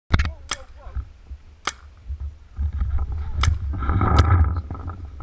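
Paintball guns fire with sharp, sudden pops at intervals.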